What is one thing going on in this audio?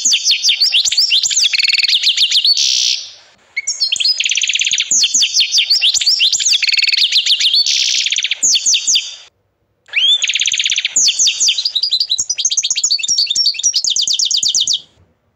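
A canary sings rapid trills and warbling phrases close by.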